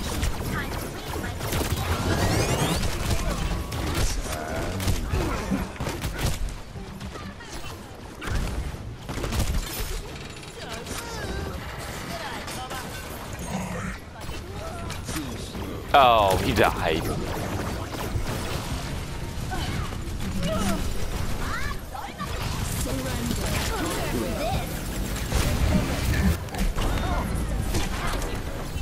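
A game weapon fires rapid shots.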